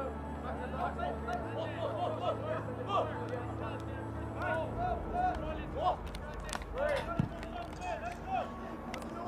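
Players call out to each other across an open field outdoors.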